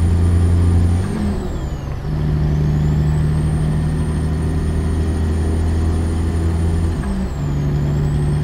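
A truck engine briefly drops in pitch as gears shift, then picks up again.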